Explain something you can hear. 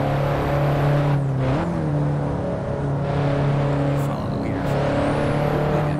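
A car engine hums steadily, shifting pitch as gears change.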